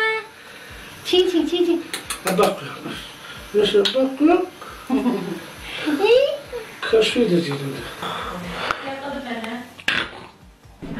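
A middle-aged woman speaks warmly and playfully up close.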